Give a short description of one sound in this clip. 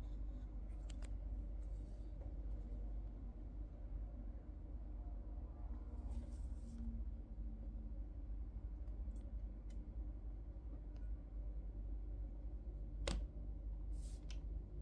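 A fingertip taps and clicks against a hard plastic case.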